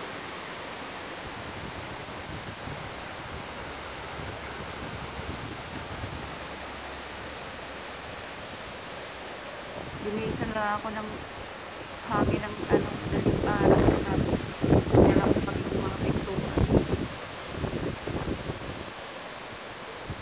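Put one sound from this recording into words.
Strong gusty wind roars through dense trees outdoors.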